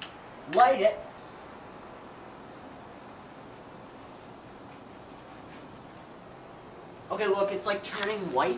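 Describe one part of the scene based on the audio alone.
A gas torch hisses steadily.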